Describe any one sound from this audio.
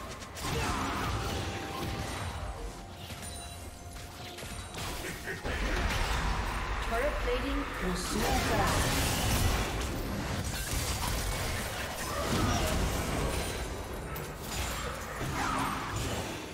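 Spell blasts and whooshes crackle and boom in a game battle.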